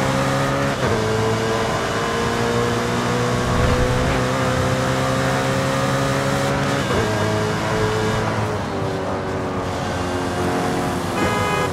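A high-revving car engine roars steadily, dropping briefly in pitch at each gear change.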